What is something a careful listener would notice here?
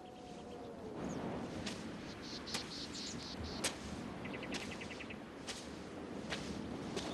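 Footsteps fall slowly on the ground outdoors.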